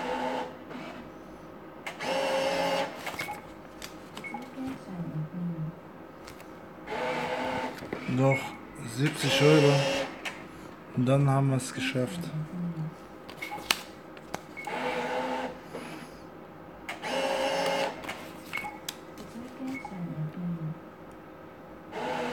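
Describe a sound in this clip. A paper ticket slides into a machine slot with a soft whirr.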